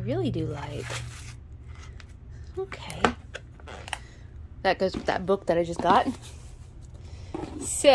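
A cardboard box lid rustles and scrapes as it is handled.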